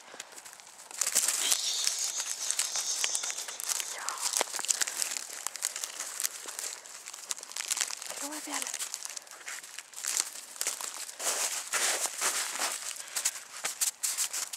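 Dry grass rustles and crackles under puppies' paws close by.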